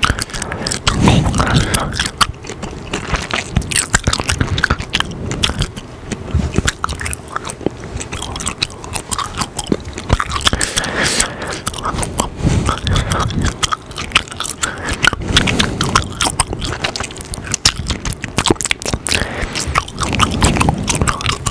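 A young man whispers softly and closely into a microphone.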